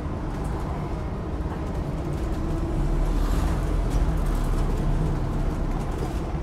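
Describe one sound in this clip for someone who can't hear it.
A bus engine rumbles steadily while the bus moves.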